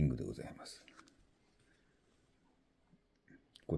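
A metal ring clicks softly against a small box.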